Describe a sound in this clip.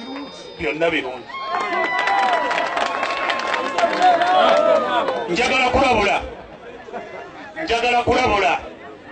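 A crowd murmurs and calls out in the background.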